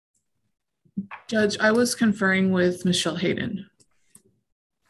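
A young woman speaks over an online call.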